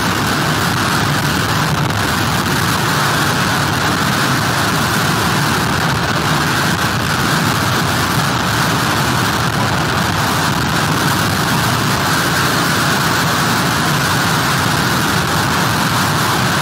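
Surf rolls in and crashes steadily onto a beach.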